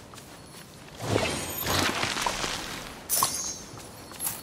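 A magical sparkling chime rings out in bursts.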